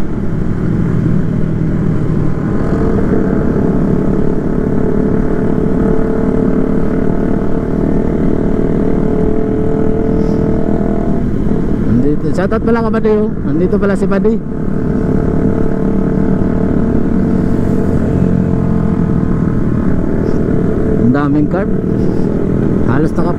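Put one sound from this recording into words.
A motorcycle engine drones steadily up close.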